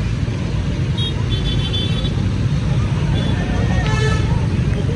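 Motorbike horns beep several times.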